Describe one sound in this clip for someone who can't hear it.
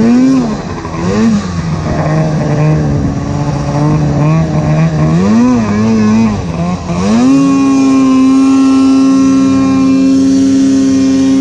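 Snow sprays and hisses under a snowmobile.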